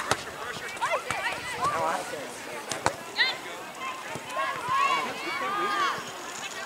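Men and women on a sideline shout and cheer loudly in the open air.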